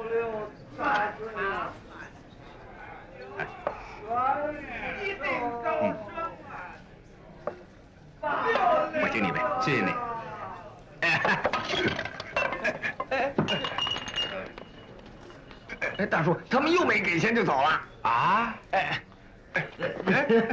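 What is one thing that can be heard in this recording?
Men talk and laugh with animation nearby.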